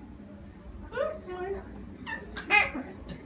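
A baby coos and babbles.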